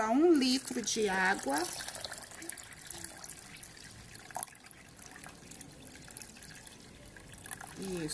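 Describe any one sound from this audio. Water pours into a blender jar.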